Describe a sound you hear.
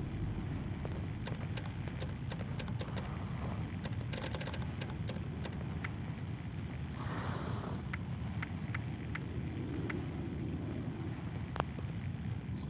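Soft interface clicks tick rapidly as a menu is scrolled.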